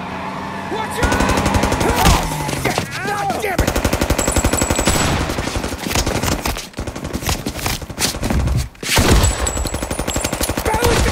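Submachine guns fire in rapid bursts that echo loudly.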